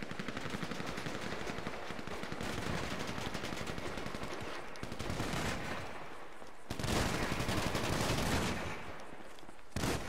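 Footsteps run over dry gravel.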